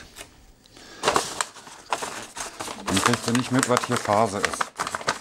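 Wrapping paper crinkles and rustles.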